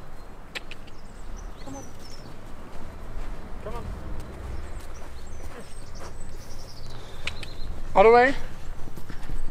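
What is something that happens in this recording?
A pony's hooves thud softly on sand.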